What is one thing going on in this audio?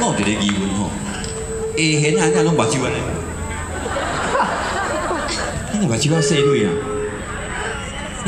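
A band plays on an outdoor stage.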